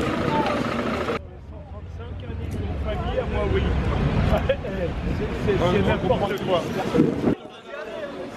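A man speaks loudly outdoors among a crowd.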